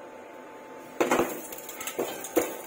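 A knife scrapes potato pieces off a wooden board into a metal pan, where they land with knocks and clatters.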